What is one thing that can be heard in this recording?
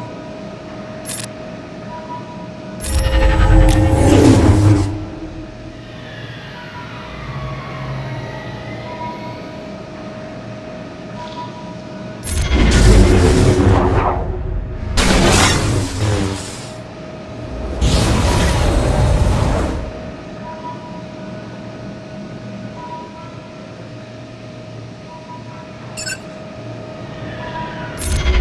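Lightsabers hum steadily.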